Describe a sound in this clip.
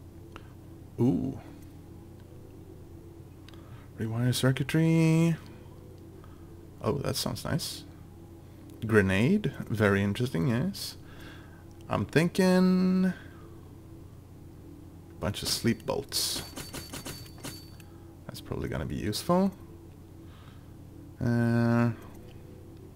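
Short electronic menu chimes and clicks sound as selections change.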